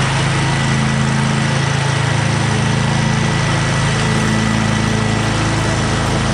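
A lawn mower engine drones steadily.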